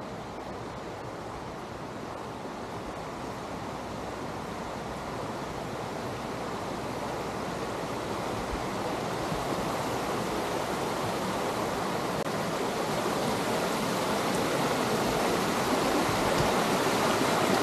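Water rushes and splashes over rocks, growing steadily louder.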